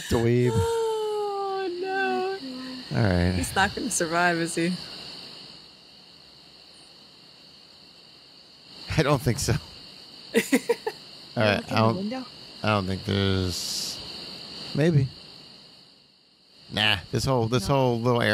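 A young woman talks and laughs through a microphone.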